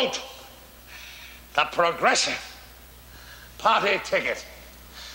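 An elderly man speaks theatrically in bursts, with a slight echo.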